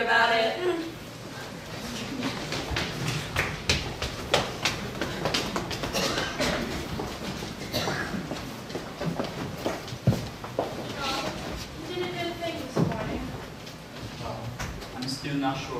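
Footsteps shuffle across a wooden stage.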